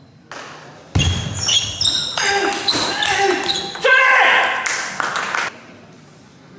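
A young man shouts loudly in an echoing hall.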